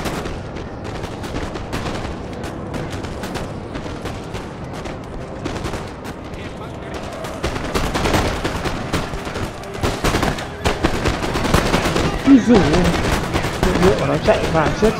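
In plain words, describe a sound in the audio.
Cannons boom in the distance.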